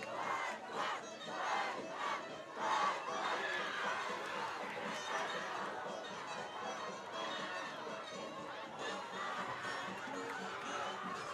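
A crowd in the stands cheers and chatters loudly outdoors.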